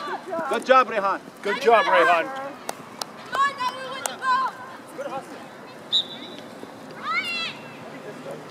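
Young boys shout to each other outdoors across an open field.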